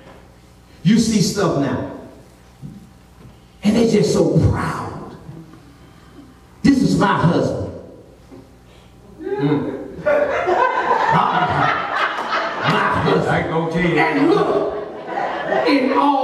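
A man shouts with energy through a microphone over loudspeakers in a large echoing room.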